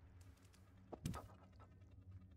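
A cat lands with a dull thud after a jump.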